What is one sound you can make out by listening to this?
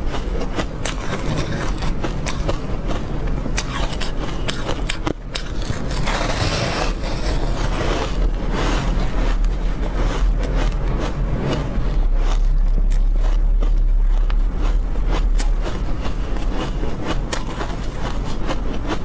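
A young woman bites and chews soft food close to a microphone with crisp, sticky mouth sounds.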